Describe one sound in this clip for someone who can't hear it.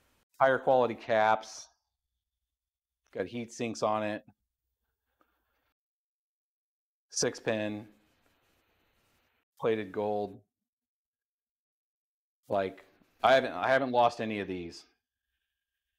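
A man talks calmly into a nearby microphone, in short phrases with pauses.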